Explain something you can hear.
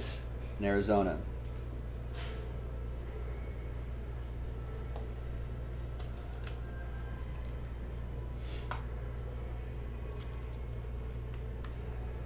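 Trading cards shuffle and click as they are handled.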